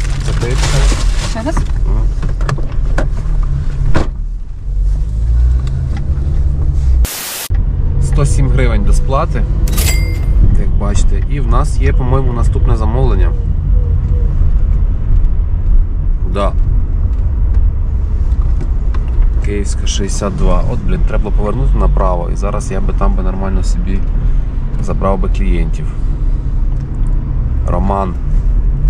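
A car engine hums low and steady inside the car.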